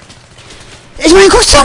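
A rifle fires a burst of rapid shots.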